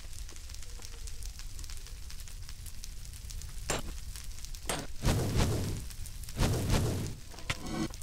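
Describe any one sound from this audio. A pickaxe chips and breaks stone blocks.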